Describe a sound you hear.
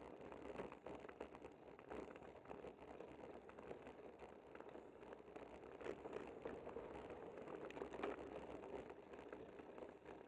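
Tyres roll and rattle over rough asphalt.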